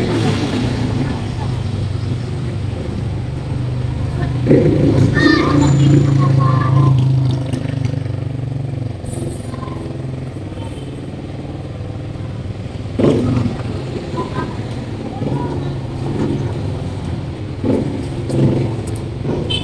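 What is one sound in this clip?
Engines of passing vehicles rumble along a city street outdoors.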